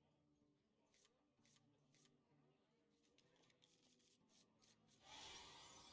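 Cards whoosh and flick into place.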